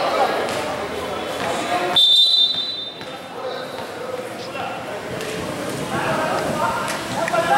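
Men talk casually in a large echoing hall.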